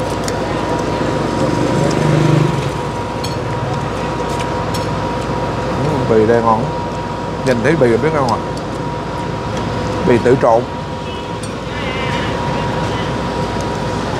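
A metal spoon clinks against a plate.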